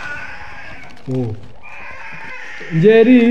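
A young child speaks and giggles close by.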